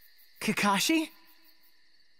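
A young man asks a short question in a soft voice.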